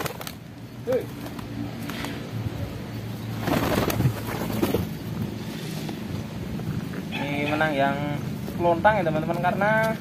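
Pigeons flap their wings in quick bursts.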